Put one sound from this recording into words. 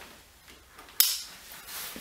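A buckle clicks shut.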